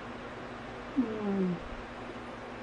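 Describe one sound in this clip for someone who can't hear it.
A young woman hums with pleasure close by.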